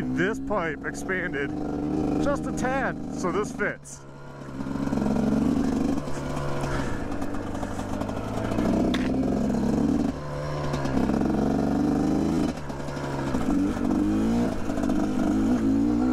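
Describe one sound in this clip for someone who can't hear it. A dirt bike engine revs and drones up close.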